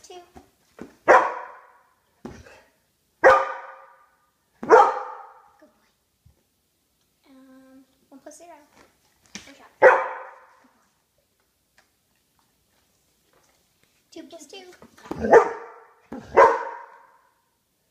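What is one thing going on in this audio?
A dog barks loudly several times, close by.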